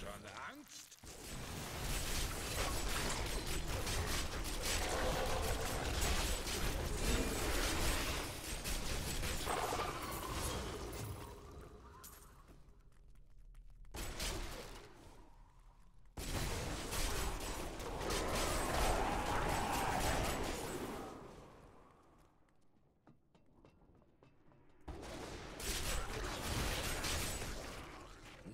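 Magic spells crackle and explode in a fast fight.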